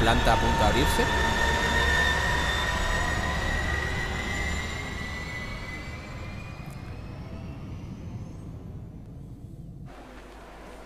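A spaceship engine roars and whooshes past, slowly fading.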